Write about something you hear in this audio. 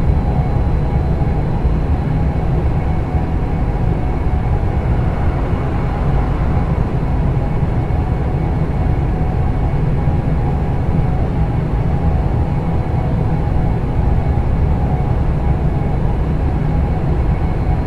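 An electric train hums and rumbles steadily at speed along the rails.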